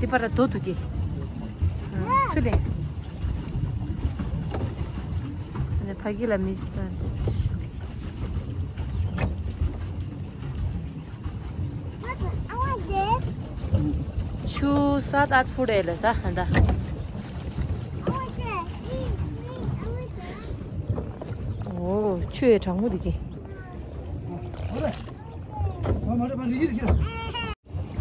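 Water laps and splashes against the side of a small boat.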